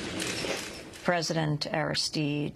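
A woman speaks calmly and clearly close to a microphone.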